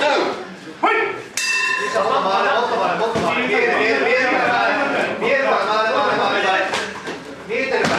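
Gloved punches and kicks land with dull thuds.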